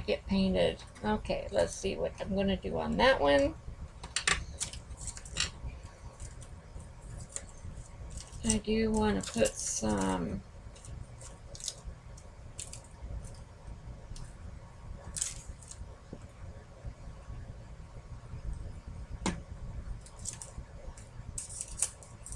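Paper and tape crinkle and rustle under hands.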